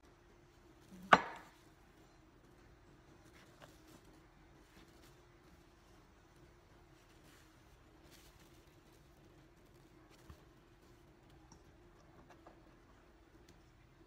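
A knife taps and cuts on a wooden board.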